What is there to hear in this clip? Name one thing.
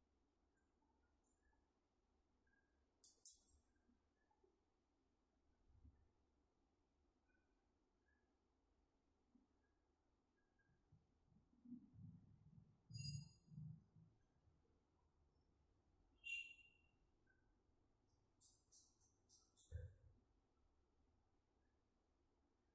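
A comb brushes through long hair.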